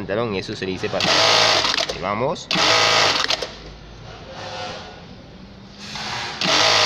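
A sewing machine runs in short, fast bursts of stitching.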